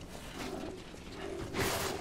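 Fire crackles and bursts.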